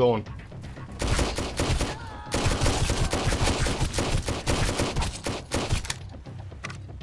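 A pistol fires a rapid series of shots.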